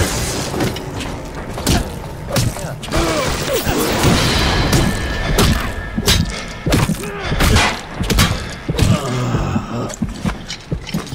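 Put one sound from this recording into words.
A wrench strikes a body with heavy thuds.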